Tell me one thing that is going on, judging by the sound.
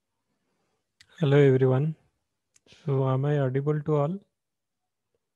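A young man speaks briefly through an online call.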